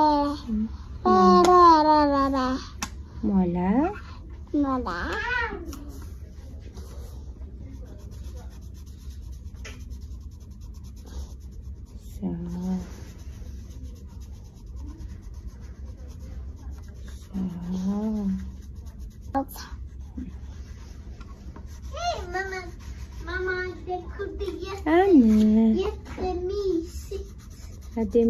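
A young woman speaks softly and warmly up close.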